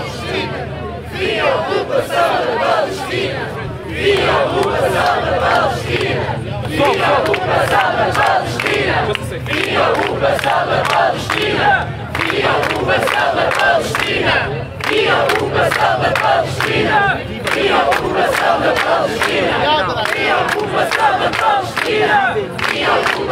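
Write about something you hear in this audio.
A crowd of men and women chants loudly together outdoors.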